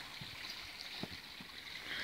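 A small stream trickles over stones nearby.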